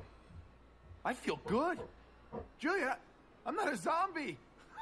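A young man speaks with rising excitement.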